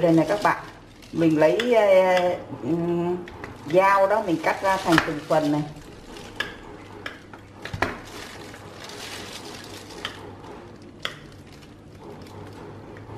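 A knife cuts through a soft, crumbly cake.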